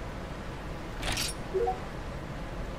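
A short game menu sound swishes and chimes.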